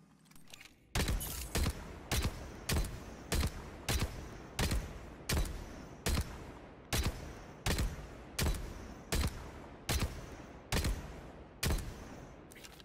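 A gun fires shot after shot at a steady pace, each shot booming and ringing out.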